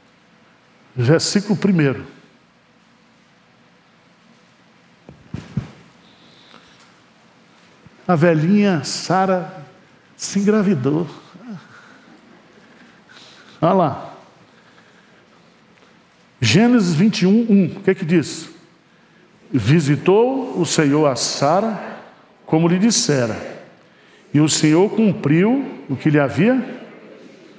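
A middle-aged man speaks calmly into a microphone, pausing between phrases.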